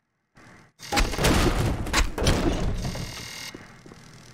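A crowbar smashes a wooden crate, and the wood splinters and cracks.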